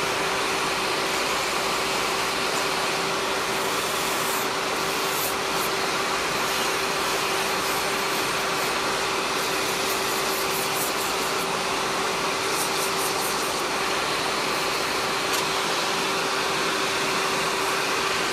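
An electric nail drill whirs with a steady high hum.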